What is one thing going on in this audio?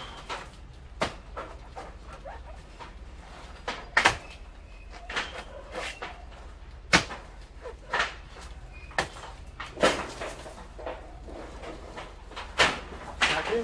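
Branches snap and thud now and then.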